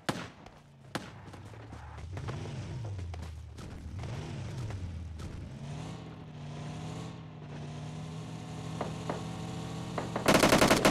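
A car engine hums steadily and rises and falls as it drives.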